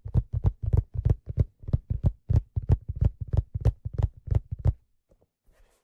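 Fingers tap quickly and rhythmically on a hard object close to a microphone.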